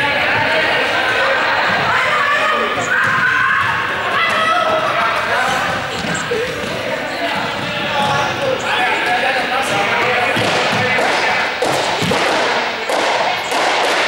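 A group of young men and women shout and chatter during a game in a large echoing hall.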